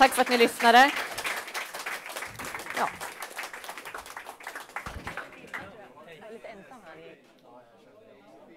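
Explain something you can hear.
A crowd of people murmurs and chatters.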